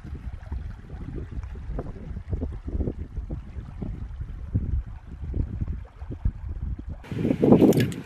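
A stream trickles over stones.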